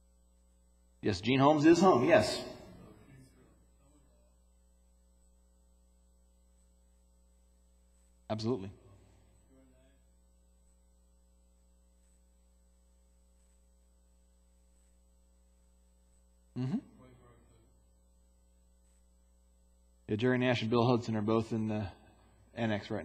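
A man speaks through a microphone in a large echoing room, in short bursts with long pauses.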